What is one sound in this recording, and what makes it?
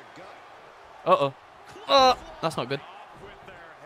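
A second young man shouts excitedly into a microphone.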